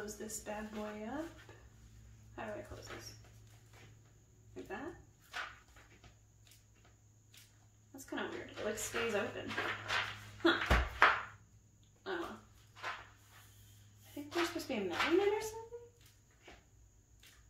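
Stiff paper rustles and scrapes as hands handle a book.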